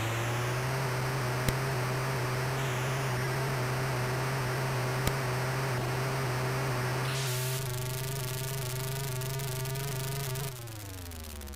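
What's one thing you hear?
A buzzy electronic car engine drones steadily, then winds down in pitch near the end.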